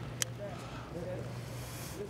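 Water squirts from a bottle.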